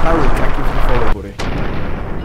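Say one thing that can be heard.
A loud explosion roars and rumbles.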